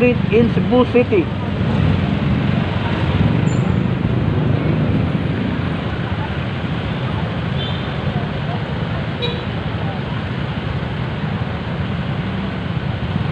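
Car and motorcycle engines rumble in city traffic.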